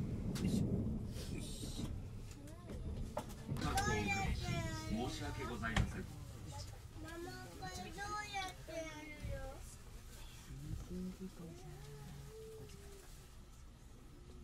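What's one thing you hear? A train rumbles along the tracks and slows to a stop.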